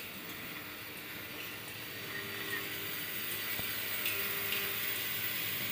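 A vibratory feeder bowl hums and rattles steadily.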